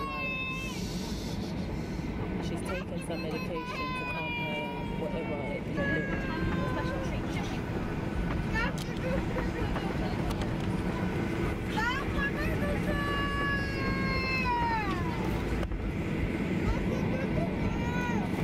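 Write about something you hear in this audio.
A plane's engines drone steadily throughout.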